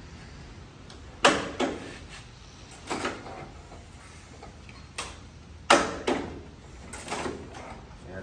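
Metal tools clank against an old engine.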